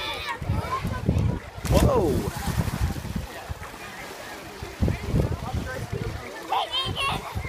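Children shout and call out nearby outdoors.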